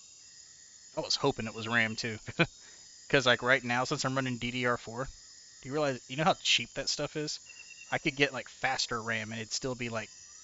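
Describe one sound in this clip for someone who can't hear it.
A young man talks calmly and closely into a microphone.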